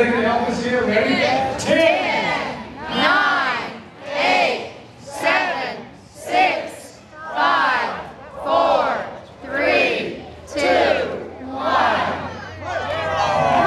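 A man shouts with animation through a loudspeaker microphone outdoors.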